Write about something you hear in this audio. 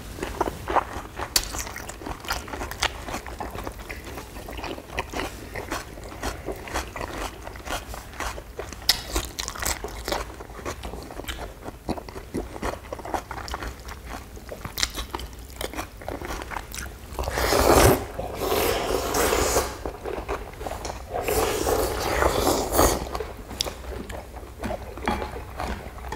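Chopsticks click against bowls.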